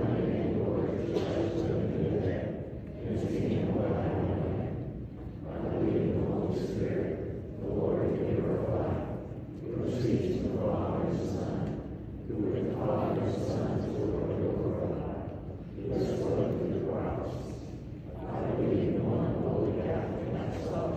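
A congregation of men and women sings together in phrases in an echoing hall.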